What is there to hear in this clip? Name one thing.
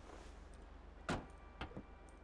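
A car door clunks open.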